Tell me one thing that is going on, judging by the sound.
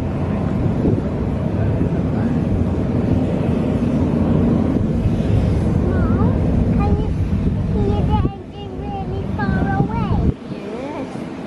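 A jet airliner roars far overhead.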